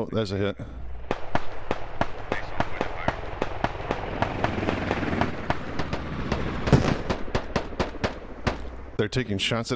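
A helicopter's rotor thumps rapidly overhead.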